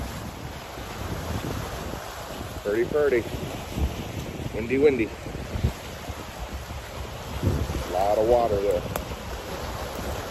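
Wind blows steadily outdoors, buffeting the microphone.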